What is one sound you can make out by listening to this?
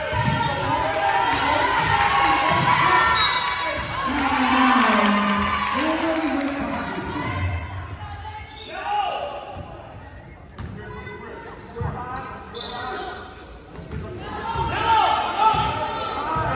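A crowd of spectators talks and cheers in a large echoing gym.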